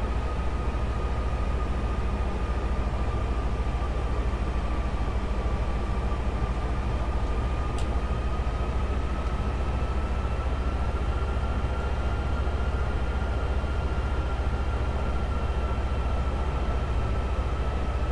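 Jet engines drone with a steady low roar.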